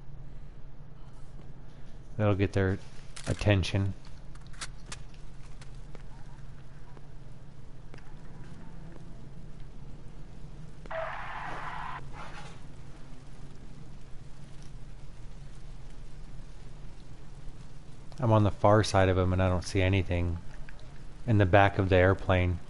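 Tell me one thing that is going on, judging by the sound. A small fire crackles nearby.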